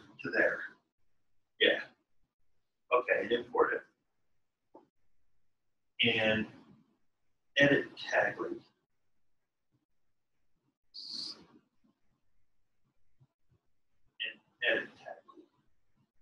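A man talks calmly in short bursts, heard through an online call.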